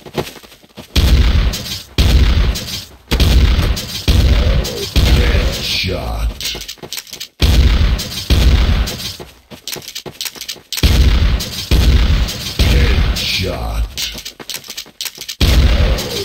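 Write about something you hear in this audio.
A shotgun fires in loud repeated booming blasts.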